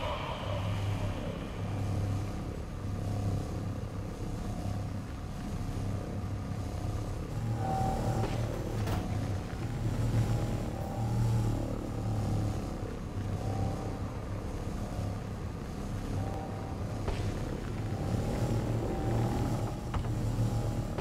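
A hovering vehicle engine hums with a steady low drone.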